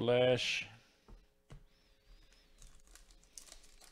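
A foil wrapper crinkles and rustles between fingers.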